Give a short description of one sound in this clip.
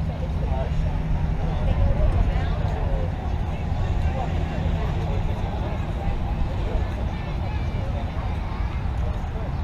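Young women call out and chatter across an open field.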